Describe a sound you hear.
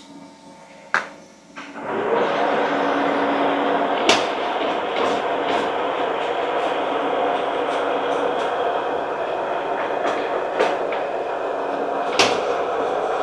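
Metal parts clank sharply now and then.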